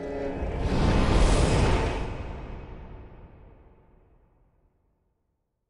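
A loud whooshing burst of a game's bonfire effect swells and fades away.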